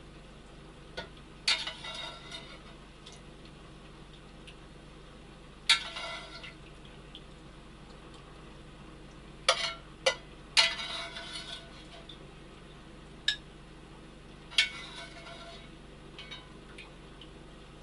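Dishes clink and clatter as they are washed.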